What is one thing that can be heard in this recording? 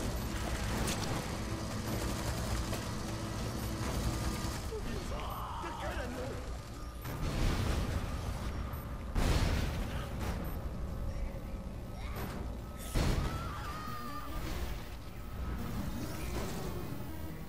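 Heavy impacts thud as a truck ploughs through bodies.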